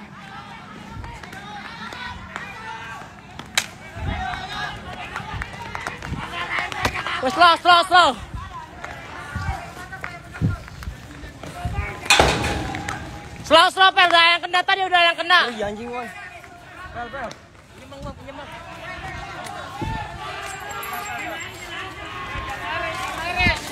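A crowd shouts in the distance outdoors.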